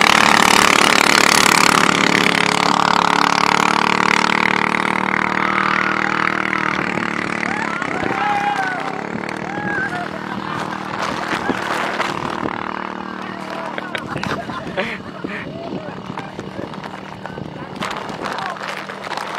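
A powerboat engine roars at high speed across open water.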